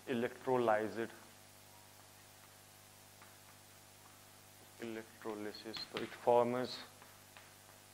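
A young man speaks calmly into a nearby microphone, in short bursts.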